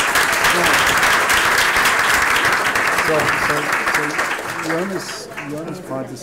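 An audience applauds in a large room.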